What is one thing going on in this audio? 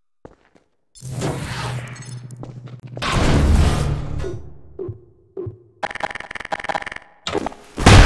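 A gravity gun hums and zaps as it fires.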